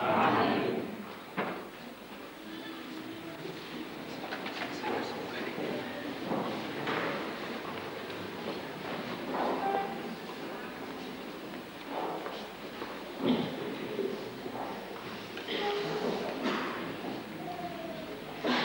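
A large crowd of men and women murmurs and chatters in an echoing hall.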